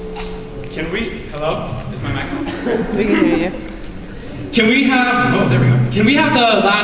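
A young man speaks into a microphone through loudspeakers in a large echoing hall.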